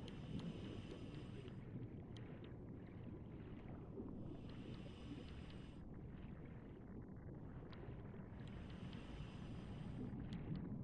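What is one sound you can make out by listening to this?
Air bubbles burst from a scuba diver's regulator in regular bursts.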